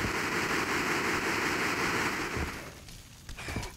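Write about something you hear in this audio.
A welding torch hisses steadily.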